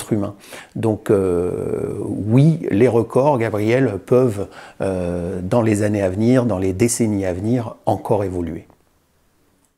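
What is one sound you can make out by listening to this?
A middle-aged man speaks calmly and with animation, close to a microphone.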